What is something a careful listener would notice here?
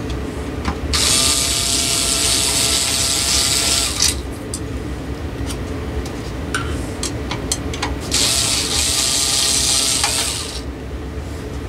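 An electric screwdriver whirs in short bursts.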